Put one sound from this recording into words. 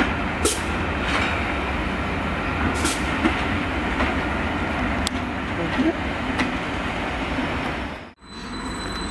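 A diesel locomotive rumbles past, hauling carriages.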